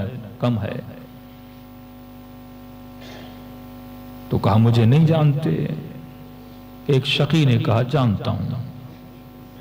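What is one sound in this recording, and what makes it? A man speaks slowly and with feeling into a microphone, heard through a loudspeaker in a reverberant room.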